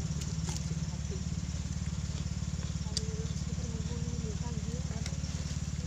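A young man crunches on raw vegetables.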